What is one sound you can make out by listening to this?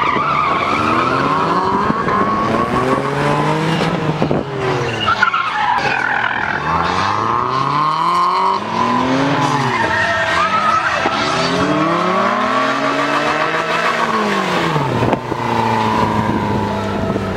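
A car engine revs hard, rising and falling repeatedly.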